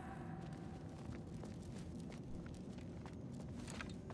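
Soft magical sparkles tinkle faintly.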